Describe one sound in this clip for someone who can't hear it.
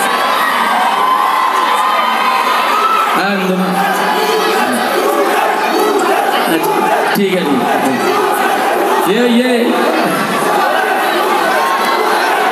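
Music with a heavy beat plays loudly through loudspeakers.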